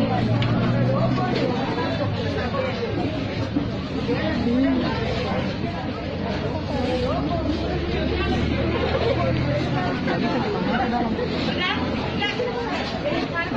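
A crowd of men and women talk over one another close by.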